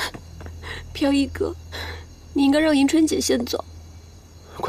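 A young woman speaks pleadingly nearby.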